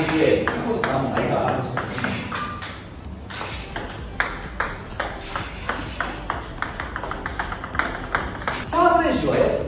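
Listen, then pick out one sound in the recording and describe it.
Table tennis balls click sharply on a table and paddle in quick succession.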